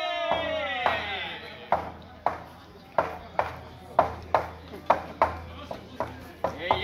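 Hands clap sharply in a steady rhythm.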